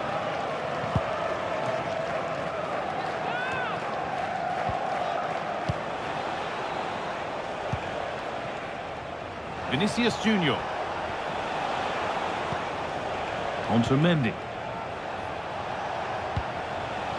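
A football is kicked with short dull thumps.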